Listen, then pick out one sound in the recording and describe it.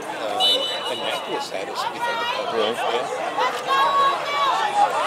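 Young players shout to each other across an open outdoor field.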